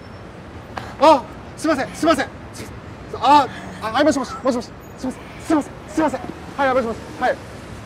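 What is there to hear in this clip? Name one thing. A young man shouts apologies in alarm.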